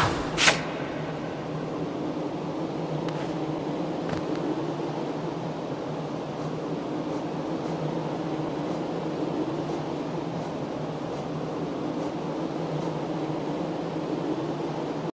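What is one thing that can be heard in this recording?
Soft, low game music hums steadily.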